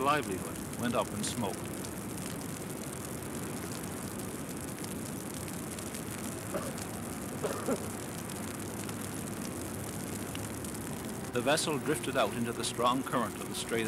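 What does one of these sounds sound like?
Choppy sea waves splash and wash.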